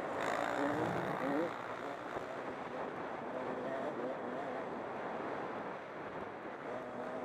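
A dirt bike engine revs and whines up close as it rides along.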